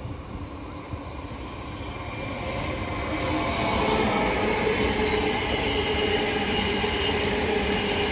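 A second train approaches and rumbles past, growing louder.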